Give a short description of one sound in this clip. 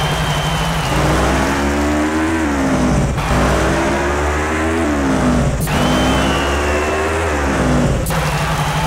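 A motorcycle engine revs up hard again and again.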